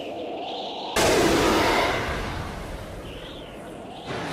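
A loud explosion bursts out suddenly.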